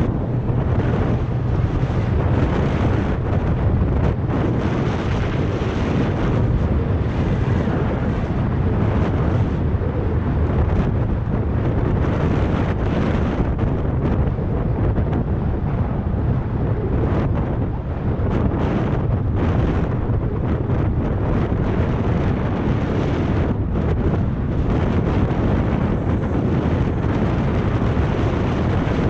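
Wind rushes loudly and steadily past.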